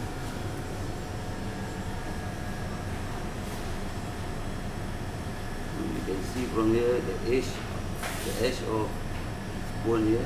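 A knife slices softly through raw fish.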